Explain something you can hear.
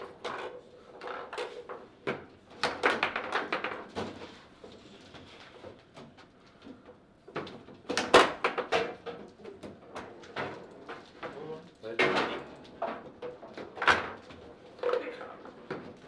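Foosball rods spin and the ball clacks sharply against the players and walls.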